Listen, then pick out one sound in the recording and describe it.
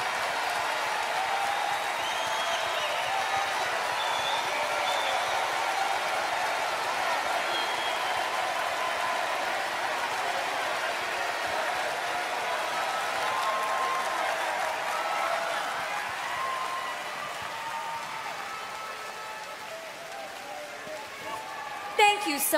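A large crowd cheers and applauds in a big echoing hall.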